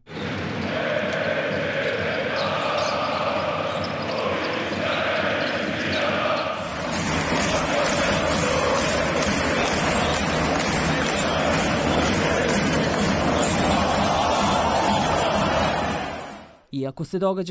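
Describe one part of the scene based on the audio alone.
A crowd cheers and roars loudly in a large echoing arena.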